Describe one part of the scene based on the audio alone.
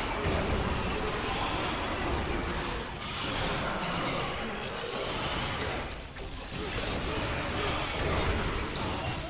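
Magic spells crackle and burst in rapid succession.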